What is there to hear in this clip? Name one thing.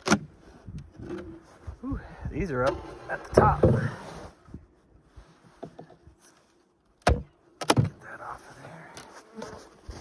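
A metal hive tool scrapes and pries at wooden hive boxes.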